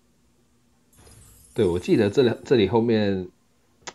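A bright, short musical fanfare plays.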